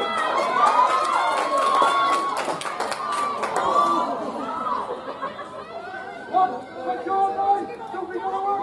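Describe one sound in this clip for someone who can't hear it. Young women shout excitedly across an open playing field.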